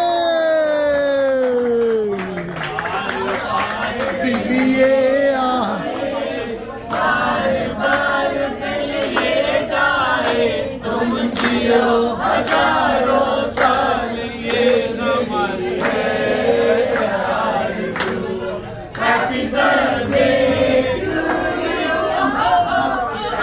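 A group of men and women sings together with animation.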